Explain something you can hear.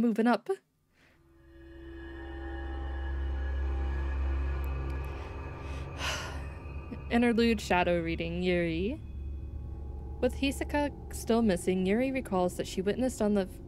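Slow, soft game music swells and plays steadily.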